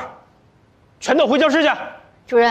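A middle-aged man shouts angrily.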